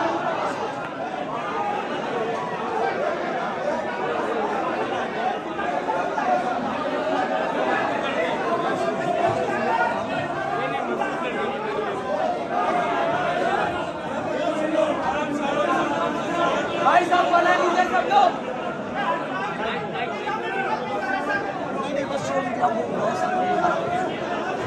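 A large crowd of men chants and shouts together in an echoing hall.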